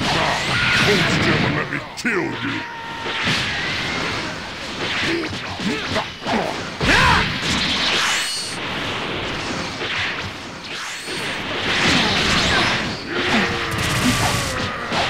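Energy blasts whoosh and crackle in a fast fight.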